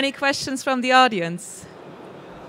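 A young woman speaks through a microphone.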